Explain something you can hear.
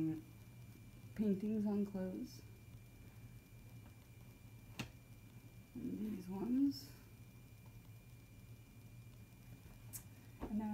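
A young woman speaks calmly and close by in short phrases.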